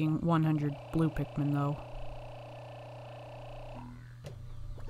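A steady electronic tone hums from a game menu.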